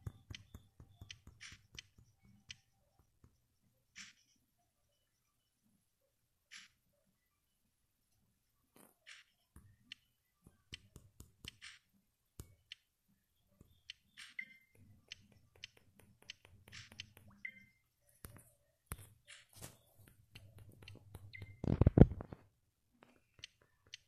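Short electronic chimes and pops sound now and then.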